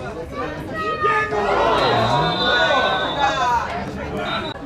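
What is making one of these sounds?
A crowd of spectators cheers loudly during a play.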